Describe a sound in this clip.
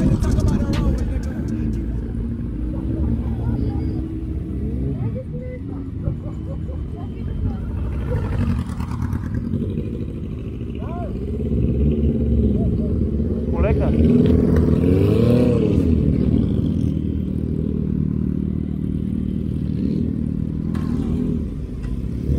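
A motorcycle engine idles close by with a steady rumble.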